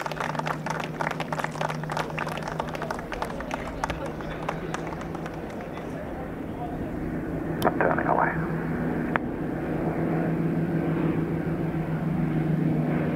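A jet airliner roars loudly as it flies low overhead.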